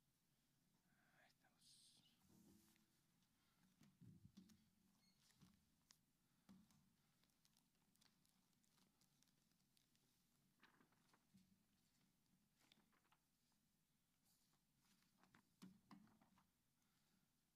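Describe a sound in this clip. Paper sheets rustle and crinkle up close.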